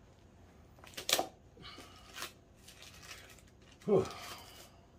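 Plastic wrapping crinkles as it is pulled open.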